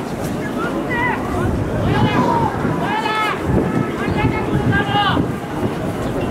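Young men shout and cheer loudly outdoors.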